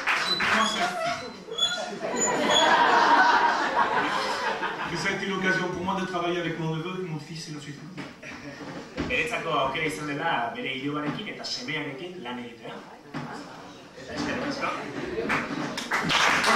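A man talks to an audience through a microphone.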